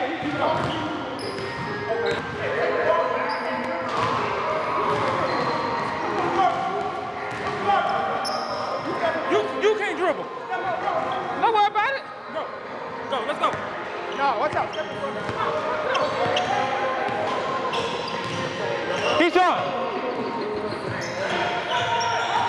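Young men talk and shout with animation in a large echoing gym.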